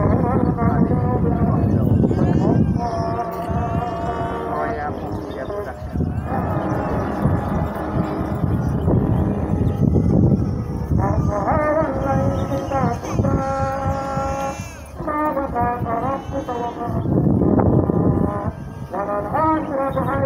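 A man's voice chants a prayer in a long, wavering melody through a loudspeaker.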